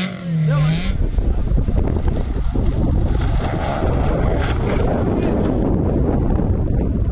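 A rally car roars past at speed.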